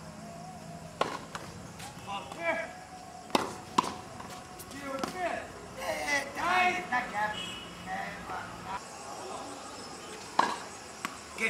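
A tennis ball is struck sharply with a racket.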